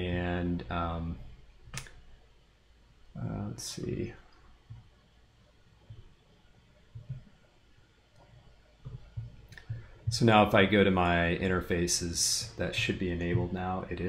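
A man speaks calmly into a close microphone, pausing now and then.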